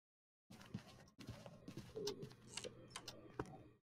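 A wooden door swings open.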